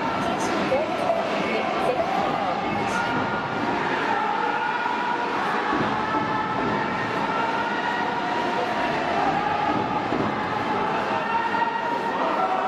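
A large crowd cheers and chants steadily in a big stadium.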